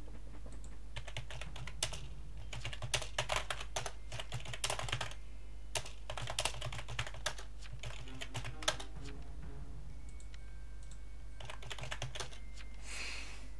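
Keyboard keys clatter in quick bursts of typing.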